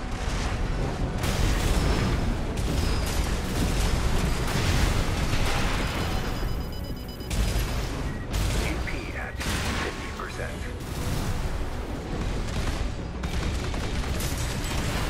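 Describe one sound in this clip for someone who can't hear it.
Explosions boom and crackle loudly.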